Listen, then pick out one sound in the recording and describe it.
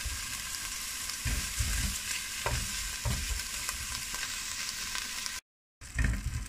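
Bacon sizzles in a hot pan.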